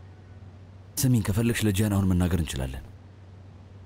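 A man speaks tensely, close by.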